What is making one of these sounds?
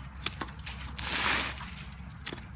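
Plant fronds rustle.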